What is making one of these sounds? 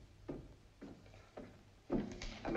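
Footsteps climb stairs.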